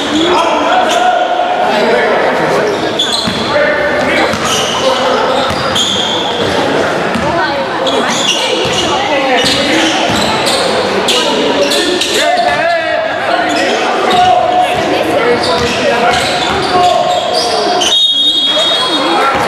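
Young men shout to each other across the hall.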